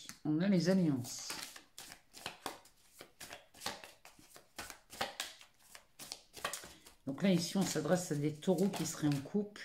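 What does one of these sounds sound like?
Cards rustle and flick as a deck is shuffled by hand.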